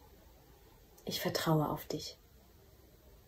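A young woman speaks briefly and calmly, close to the microphone.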